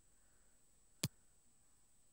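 A short menu click sounds once.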